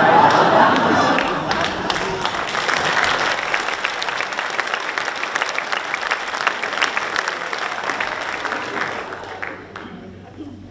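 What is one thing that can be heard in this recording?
A crowd applauds with steady clapping.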